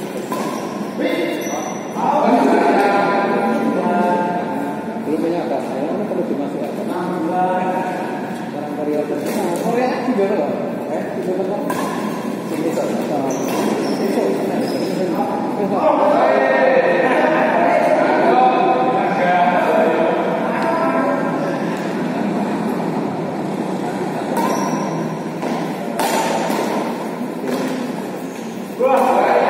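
Men talk and call out during play.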